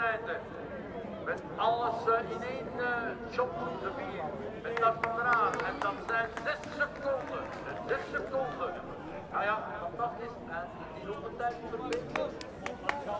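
A crowd of spectators cheers and claps along the course.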